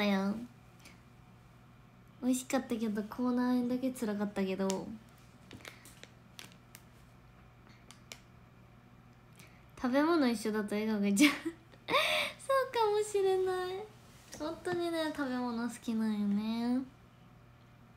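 A young woman speaks animatedly close to a microphone.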